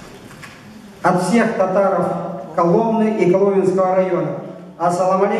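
A man speaks through a microphone over loudspeakers in a large hall.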